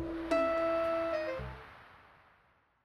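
A short bright chime jingle plays.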